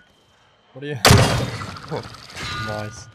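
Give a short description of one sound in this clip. A grappling launcher fires with a sharp whoosh.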